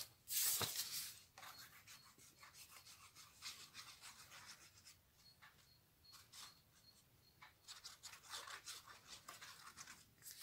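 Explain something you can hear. A glue bottle squeezes out glue with soft squelches.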